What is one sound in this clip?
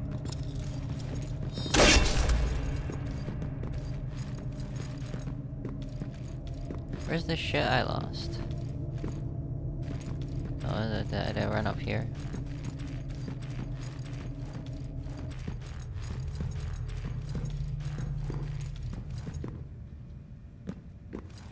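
Heavy armored footsteps clank on stone steps.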